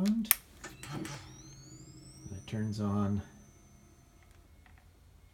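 A toy pack powers up with a rising electronic whine.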